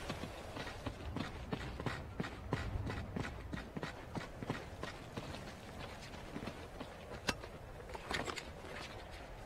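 Footsteps patter quickly on the ground.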